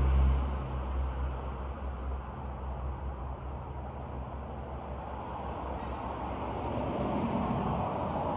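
Wind rustles the leaves of tall trees outdoors.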